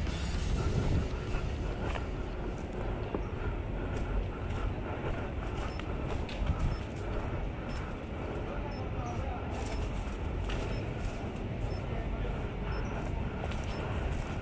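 Footsteps crunch on dry grass and leaves.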